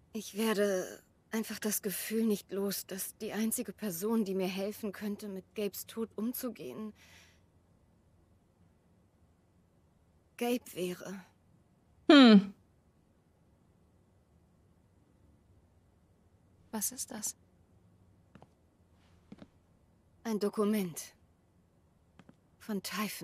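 A young woman speaks close to a microphone, in short bursts with pauses.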